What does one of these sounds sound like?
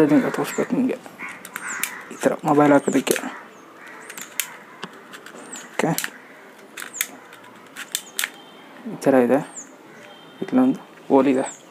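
A small plastic device clicks as it is handled.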